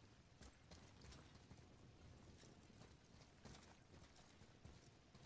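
Heavy footsteps crunch slowly over loose rubble.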